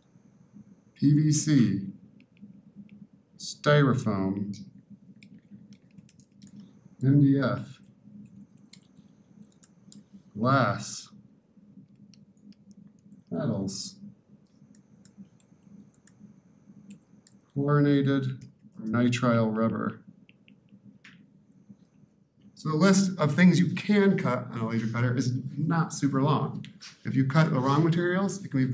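A man lectures through a microphone in a room, speaking in short calm phrases with pauses.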